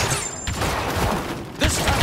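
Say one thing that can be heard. A sci-fi blaster fires shots.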